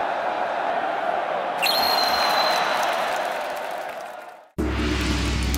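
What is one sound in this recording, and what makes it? A large stadium crowd roars and then fades.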